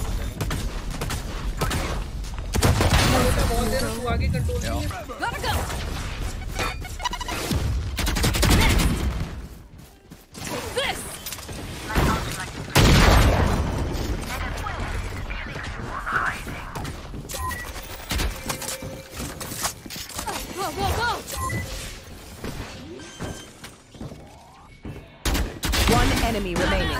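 Gunshots fire in quick bursts from a video game.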